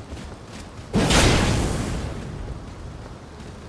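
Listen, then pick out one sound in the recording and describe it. A fiery blast bursts with a loud boom.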